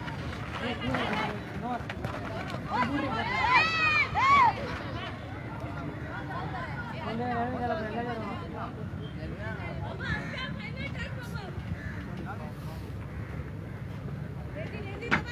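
Young men shout across an outdoor football pitch.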